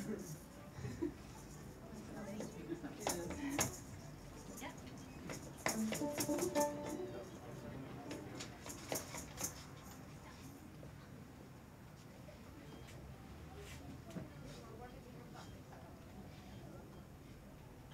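A small group of violins plays together.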